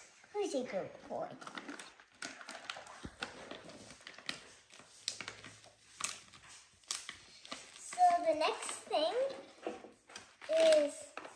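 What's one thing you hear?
A plastic snack packet crinkles in a girl's hands.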